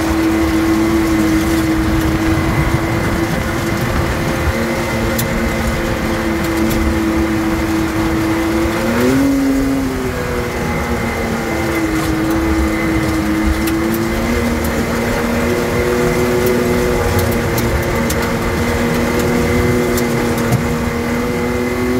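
A vehicle engine hums steadily, with a brief change in pitch partway through.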